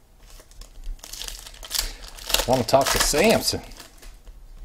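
A foil card wrapper crinkles and tears in hands.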